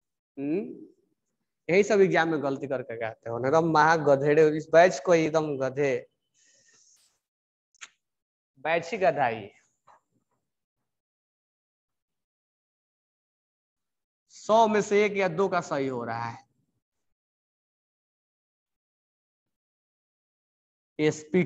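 A young man speaks calmly in a lecturing voice, close by.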